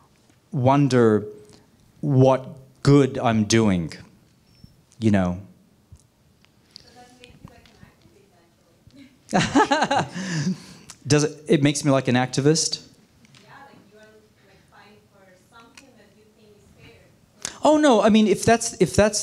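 A middle-aged man speaks calmly into a microphone, heard through a loudspeaker in a hall.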